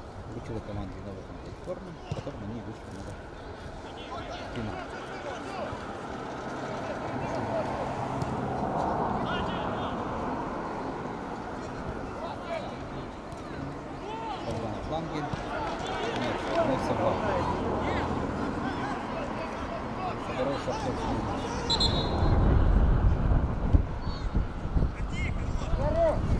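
Players shout to each other across a field.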